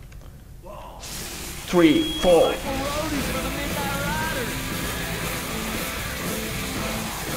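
Fountain fireworks hiss and crackle.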